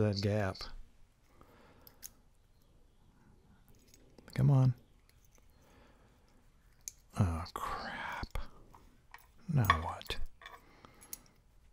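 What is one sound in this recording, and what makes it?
Small metal lock parts click and scrape against each other.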